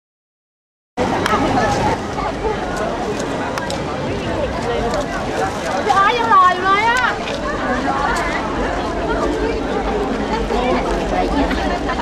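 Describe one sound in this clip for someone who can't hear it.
A large crowd chatters and shouts excitedly outdoors.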